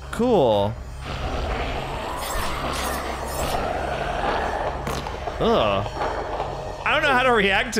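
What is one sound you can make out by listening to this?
A monster growls as it attacks.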